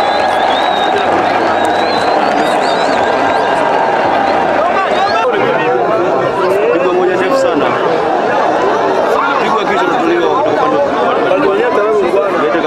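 A large outdoor crowd shouts and cheers loudly.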